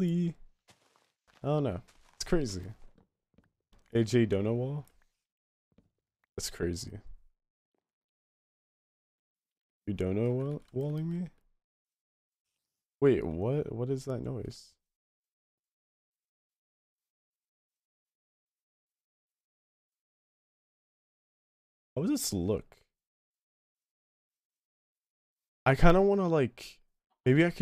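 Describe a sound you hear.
A young man talks casually and with animation into a close microphone, in short bursts.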